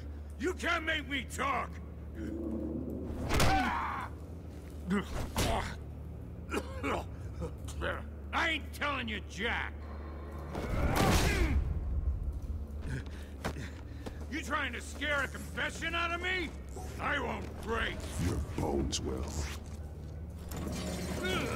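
A man speaks in a low, gruff voice, close up.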